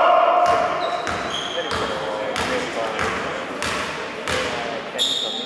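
A basketball bounces on a hard floor in a steady rhythm, echoing in a large hall.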